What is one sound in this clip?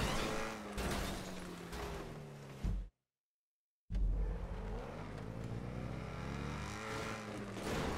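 A car engine roars and revs hard.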